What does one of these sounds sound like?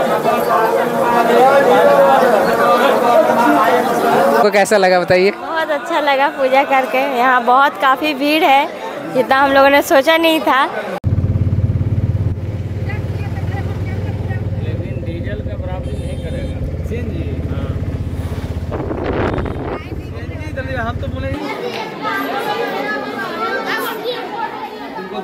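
People chatter together nearby.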